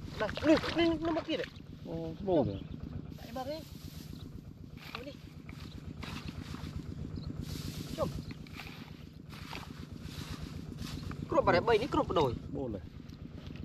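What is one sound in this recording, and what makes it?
Water splashes softly as someone wades through shallow water.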